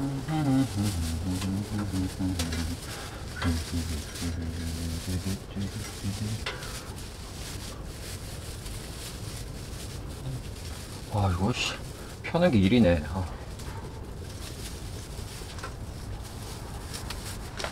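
Stiff plastic branches rustle and crinkle as hands bend them.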